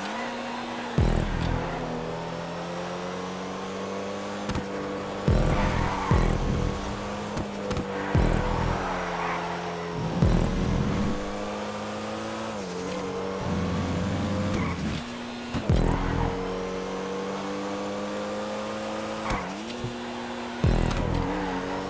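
Exhaust pops and crackles sharply from a race car.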